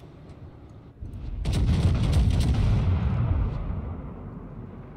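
Heavy naval guns fire with a deep, rolling boom.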